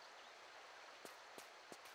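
Footsteps thud on the ground in quick steps.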